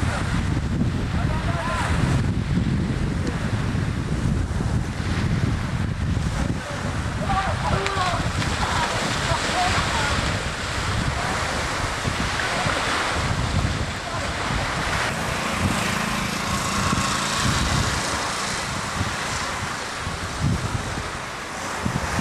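Small waves wash onto a beach.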